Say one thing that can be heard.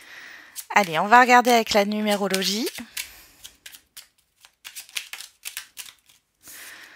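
A deck of cards is shuffled with quick, soft riffling clicks.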